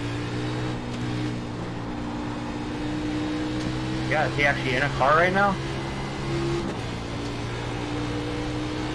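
A racing car engine drones steadily at high revs.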